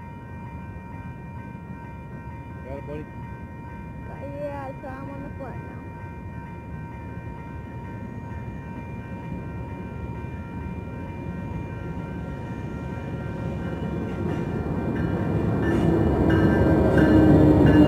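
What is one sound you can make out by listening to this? Railroad crossing bells ring steadily.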